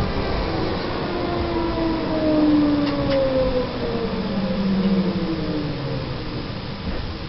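A tram's electric motor whines and falls in pitch as the tram slows down.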